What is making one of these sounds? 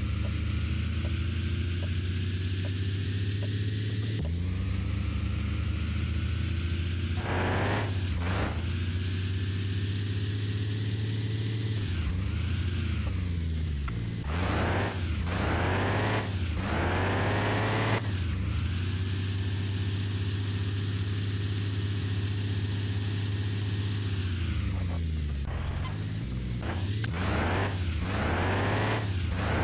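A truck engine hums steadily and rises in pitch as it speeds up, then drops as it slows and shifts gears.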